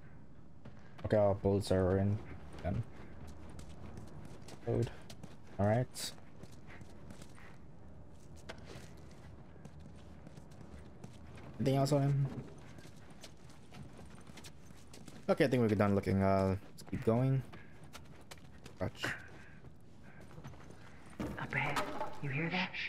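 A man speaks quietly in short, low phrases.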